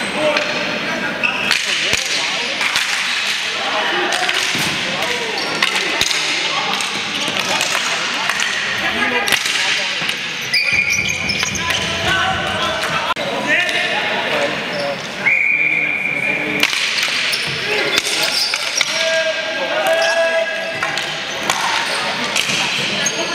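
Sticks clack against a ball and each other in a large echoing hall.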